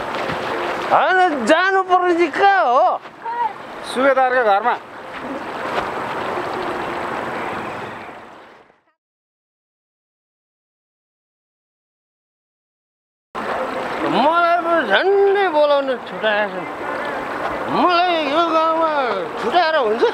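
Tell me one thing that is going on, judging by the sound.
A man talks with animation outdoors.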